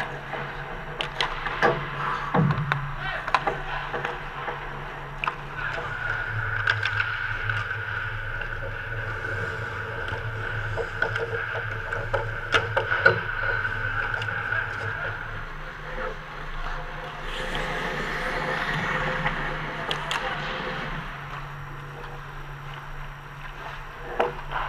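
Hockey sticks clack sharply against a puck and each other.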